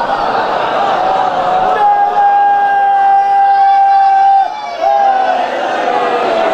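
A crowd of men chants loudly together in a long, drawn-out lament.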